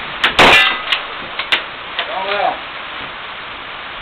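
A rifle's lever action clacks.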